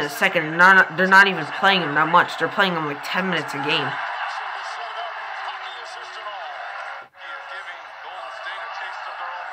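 A crowd cheers and roars from a playing broadcast.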